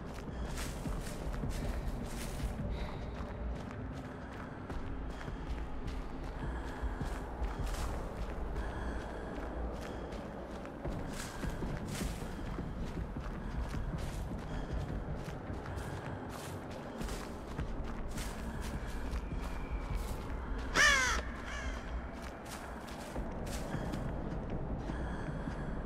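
Footsteps run quickly over grass and soft ground.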